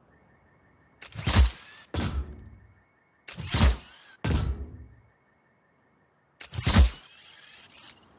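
Footsteps clang on metal rungs.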